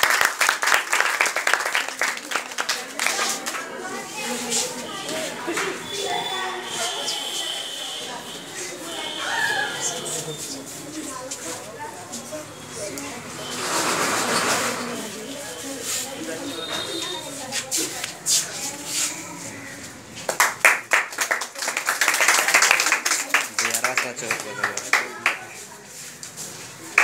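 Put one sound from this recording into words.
A small crowd of people claps.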